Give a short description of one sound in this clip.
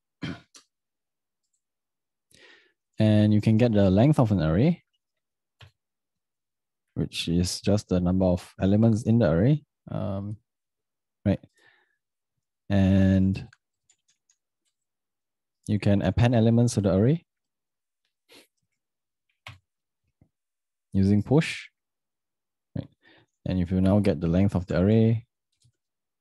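A young man speaks calmly into a close microphone, explaining in short bursts with pauses.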